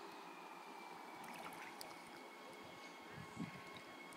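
A large fish splashes as it is released into pond water.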